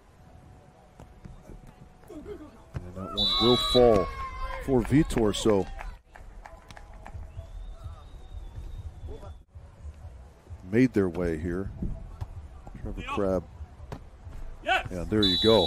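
A volleyball is hit with dull thuds.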